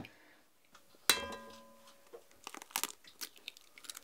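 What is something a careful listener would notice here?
An egg cracks against the rim of a pot.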